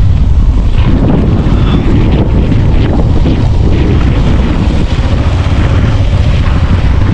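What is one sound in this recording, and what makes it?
A young man speaks close by over the wind.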